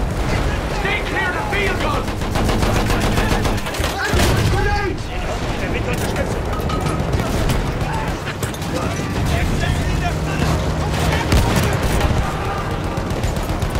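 Shells explode with heavy booms.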